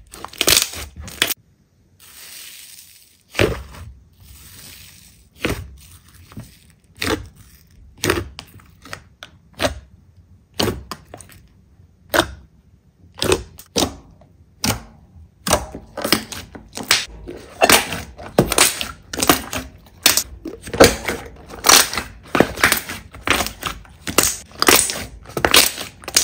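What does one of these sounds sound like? Thick slime squelches wetly as hands press and squeeze it.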